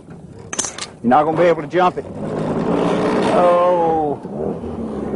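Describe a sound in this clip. A man talks loudly outdoors.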